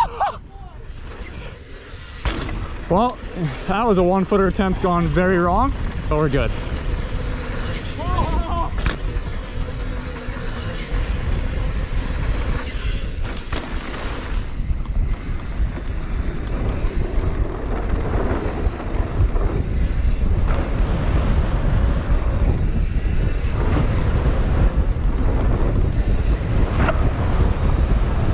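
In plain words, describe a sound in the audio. Bike tyres rumble and crunch over a dirt trail.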